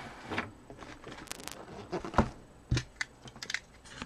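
Cardboard boxes bump and slide on a table.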